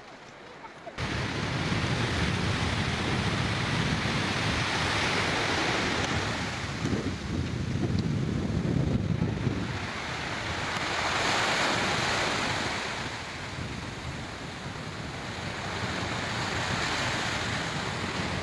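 Waves crash and wash onto a sandy shore.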